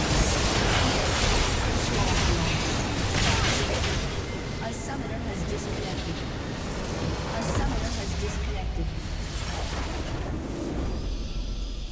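Game spells and attacks crash and blast in a busy fight.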